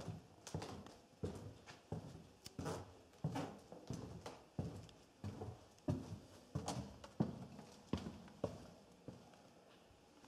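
Footsteps walk steadily along a hard floor.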